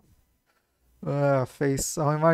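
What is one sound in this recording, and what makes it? A young man talks with animation over a headset microphone.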